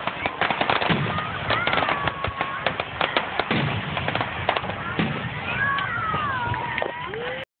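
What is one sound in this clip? Firework rockets whistle as they shoot up.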